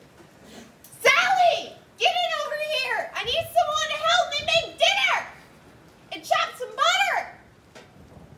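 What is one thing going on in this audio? A young woman sings loudly and playfully nearby.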